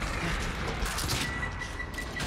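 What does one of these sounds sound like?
A heavy blow strikes flesh with a wet thud.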